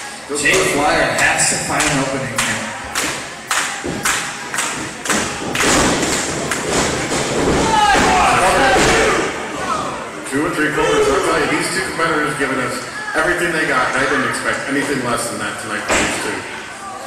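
Bodies thud and slam onto a wrestling mat in an echoing hall.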